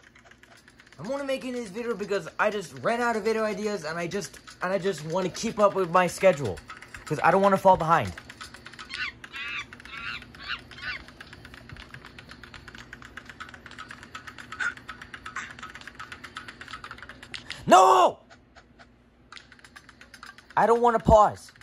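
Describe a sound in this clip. A man speaks with animation in a high, silly puppet voice.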